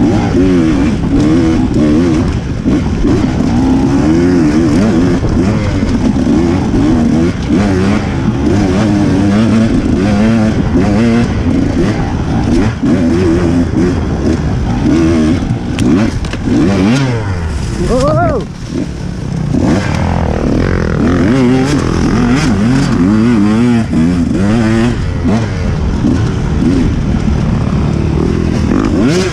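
A dirt bike engine revs and roars close by.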